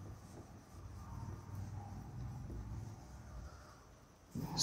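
A duster rubs softly across a whiteboard.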